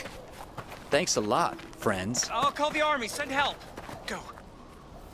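A man speaks hurriedly, close by.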